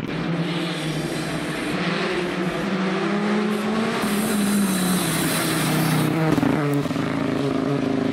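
Gravel sprays and crunches under a rally car's tyres.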